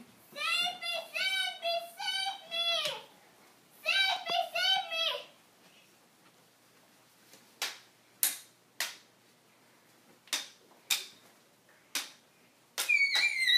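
Young children shout and squeal excitedly nearby.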